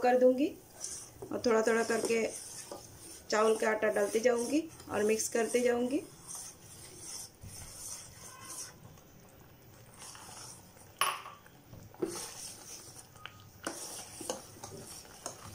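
A metal spoon scrapes and stirs inside a metal pot.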